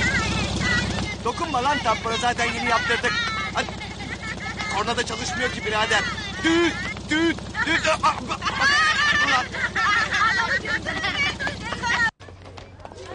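A middle-aged man talks animatedly and shouts up close.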